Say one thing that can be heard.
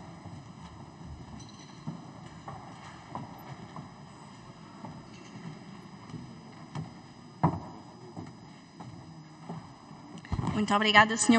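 A quiet murmur of many people fills a large echoing hall.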